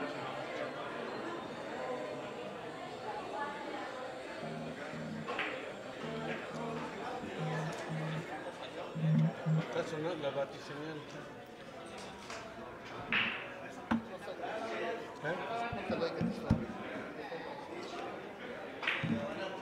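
People chat in the background of an echoing hall.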